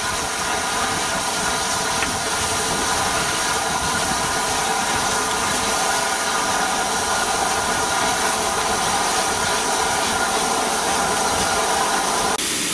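A steam locomotive hisses and hums steadily close by.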